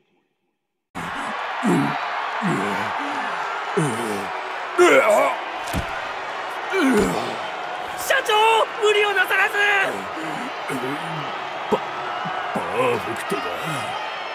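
A man pants heavily and gruffly.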